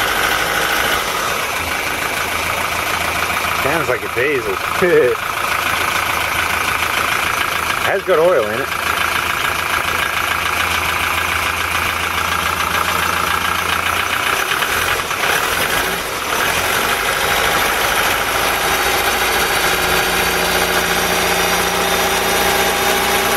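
A car engine idles steadily, with a rattling, ticking hum close by.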